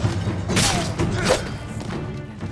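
A sword slashes with sharp metallic swishes.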